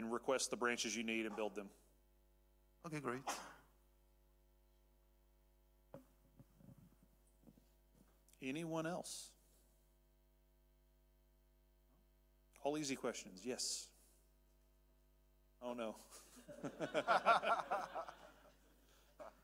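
A man speaks through a microphone, pausing between phrases.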